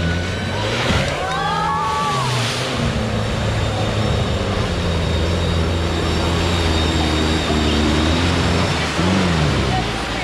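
Tyres churn and splash through deep mud.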